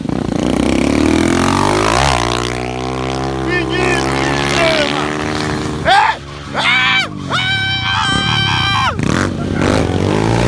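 A motorcycle engine revs loudly.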